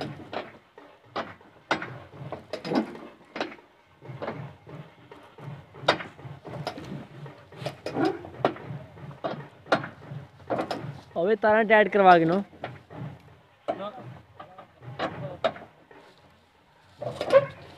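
A tractor engine idles with a steady, low chugging.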